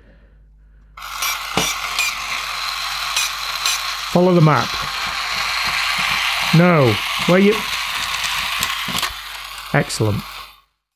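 A toy robot's motor whirs as it rolls across a table.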